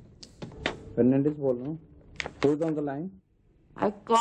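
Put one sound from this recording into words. A middle-aged man speaks on a phone.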